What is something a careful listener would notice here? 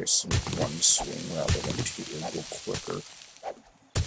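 A young man talks casually, close to a microphone.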